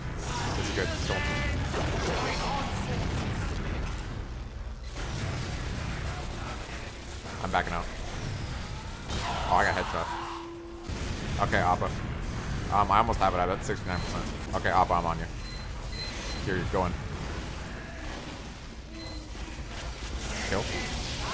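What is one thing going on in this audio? A flamethrower roars in short bursts.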